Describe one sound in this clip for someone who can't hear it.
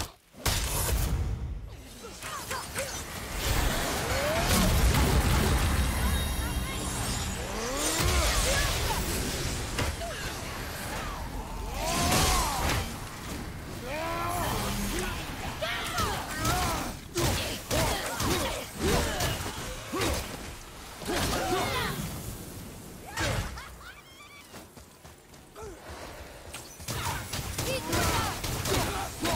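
An axe strikes with heavy, crunching impacts.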